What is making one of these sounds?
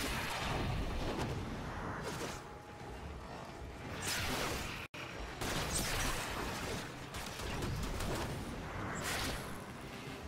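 Blades whoosh in quick, repeated swings.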